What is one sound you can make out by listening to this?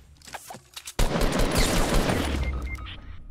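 Gunshots hit at close range in a rapid burst.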